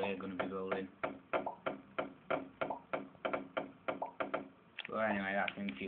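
A video game plays through a small speaker, with blocks crunching repeatedly as they are broken.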